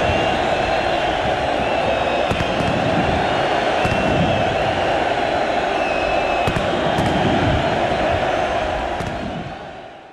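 Fireworks bang and crackle in the sky.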